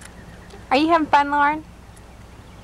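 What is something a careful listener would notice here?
A young girl speaks in a high voice close by.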